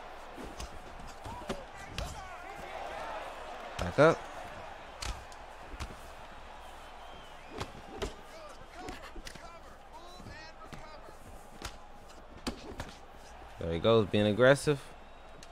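Punches thud against bodies.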